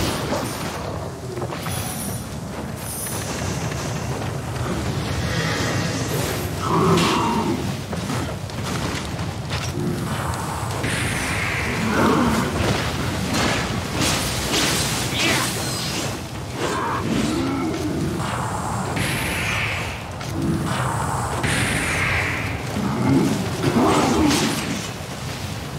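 Swords clash and slash with sharp metallic hits.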